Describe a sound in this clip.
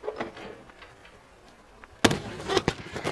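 A body lands with a heavy thud on a padded mat.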